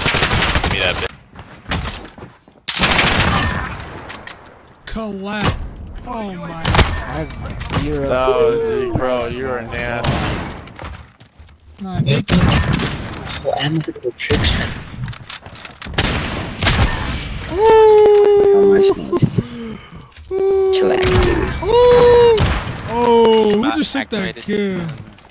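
Sniper rifle shots fire loudly, one at a time.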